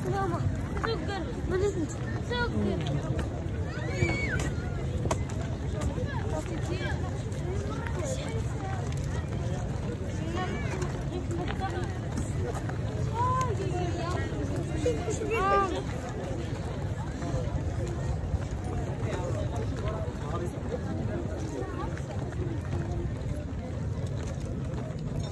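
A large crowd chatters outdoors, with many voices overlapping.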